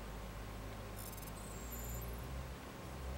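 Short electronic beeps chirp in quick succession.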